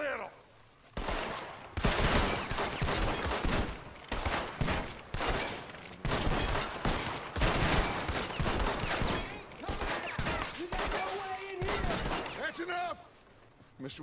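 Several guns fire in a rapid volley of shots.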